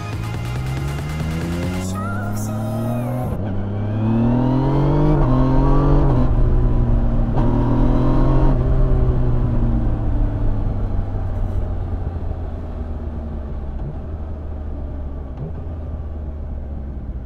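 A motorcycle engine revs up through the gears and then settles as it slows.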